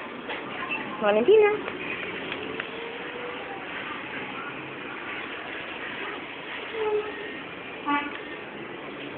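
A baby babbles and squeals close by.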